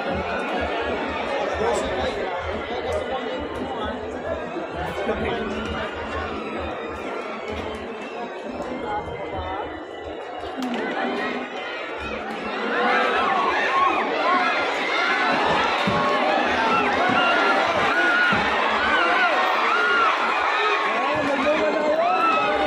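A large crowd chatters and shouts all around.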